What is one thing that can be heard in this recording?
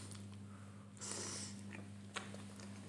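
A man chews and smacks his lips close to a microphone.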